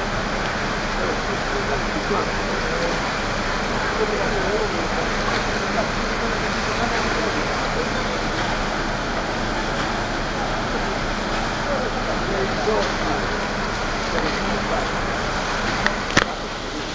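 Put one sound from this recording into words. Men talk nearby in lively voices.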